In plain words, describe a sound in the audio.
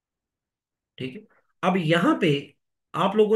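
A man speaks calmly and clearly into a close microphone, in short phrases with pauses.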